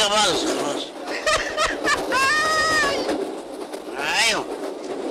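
A man laughs heartily.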